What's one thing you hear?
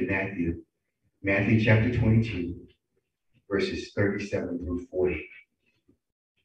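A man speaks calmly into a microphone, heard over an online call.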